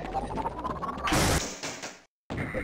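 A gun fires a loud burst of energy.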